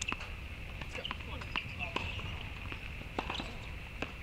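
A tennis ball bounces sharply on a hard court several times.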